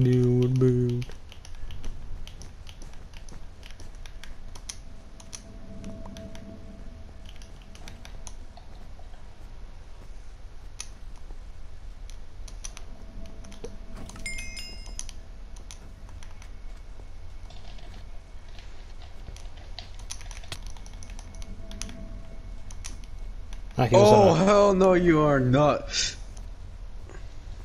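Blocks are placed with quick soft clicks.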